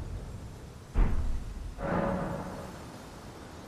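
A soft chime rings out.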